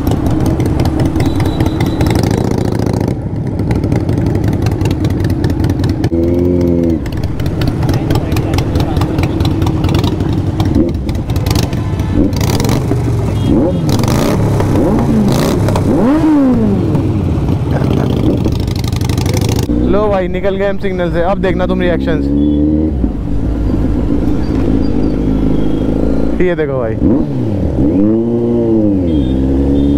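A motorcycle engine rumbles close by and revs up and down.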